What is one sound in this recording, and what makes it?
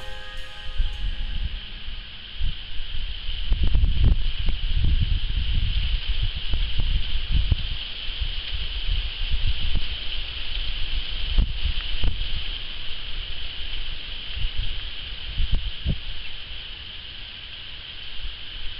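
Wind blows in rough gusts outdoors.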